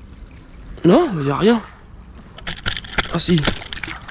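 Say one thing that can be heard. A fish splashes at the water's surface.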